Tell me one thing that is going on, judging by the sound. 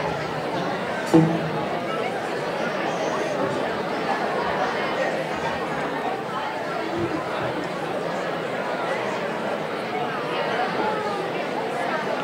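An audience murmurs and chatters throughout a large hall.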